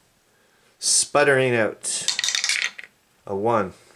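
Dice clatter down through a wooden dice tower.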